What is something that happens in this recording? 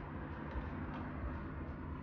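A hand presses buttons on a coffee machine with soft clicks.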